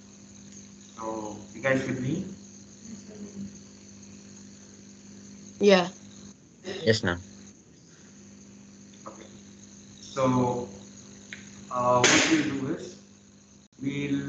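Young boys talk in short bursts, heard through an online call.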